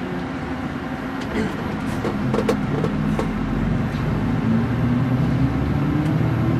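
A vehicle engine hums steadily from inside a moving vehicle.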